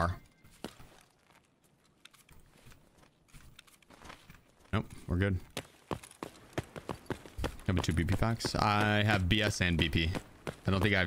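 Footsteps crunch on snow at a steady pace.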